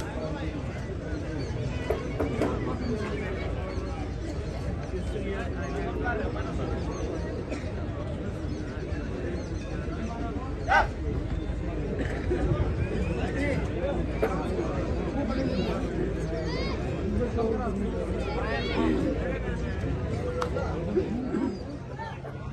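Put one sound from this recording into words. Young men chant loudly as they play a game.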